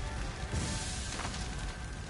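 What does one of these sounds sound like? Flames crackle and roar close by.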